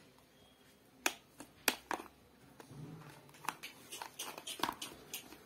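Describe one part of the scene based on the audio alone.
Plastic toy parts click and clatter as they are handled.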